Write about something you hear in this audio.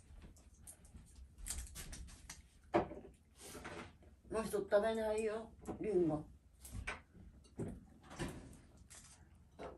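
An elderly woman talks nearby in a soft voice.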